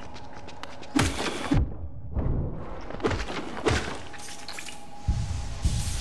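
Sharp slashing and hitting effects sound in a video game fight.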